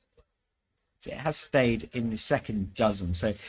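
A young man speaks calmly through a loudspeaker.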